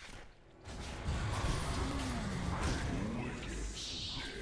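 A magic spell whooshes and booms.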